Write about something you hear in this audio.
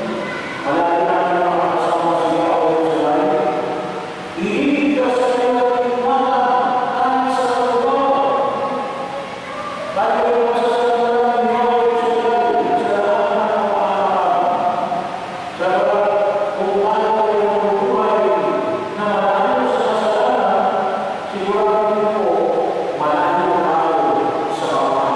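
A man sings slowly and steadily through a microphone in an echoing hall.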